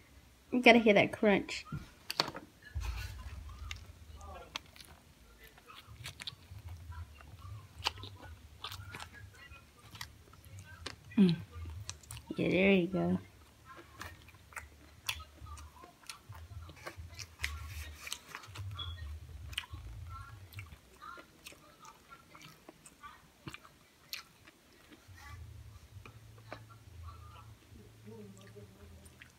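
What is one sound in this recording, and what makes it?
A young woman chews food noisily close by.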